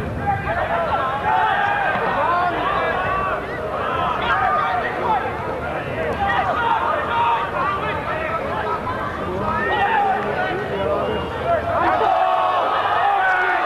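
A football crowd shouts and calls out across an open-air ground.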